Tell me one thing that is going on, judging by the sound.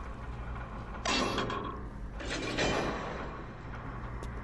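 Short menu clicks and whooshes sound as a vending machine menu opens and closes.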